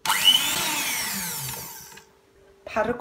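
An electric hand mixer whirs loudly.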